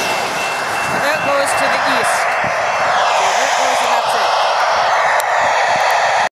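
A train rumbles along the tracks.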